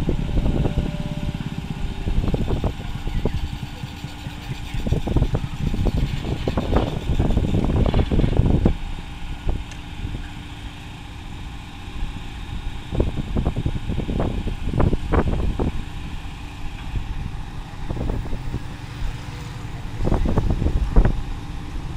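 A crane's diesel engine rumbles steadily nearby.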